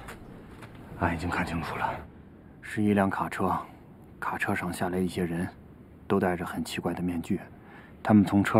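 A young man speaks urgently, close by.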